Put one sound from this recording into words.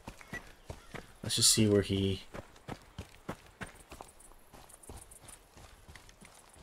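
Footsteps crunch steadily over grass and rock.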